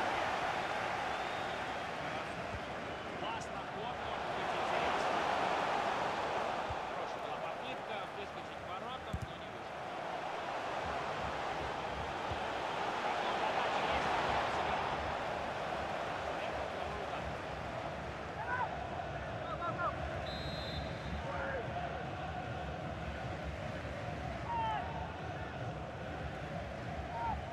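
A large stadium crowd roars steadily, swelling and easing in waves.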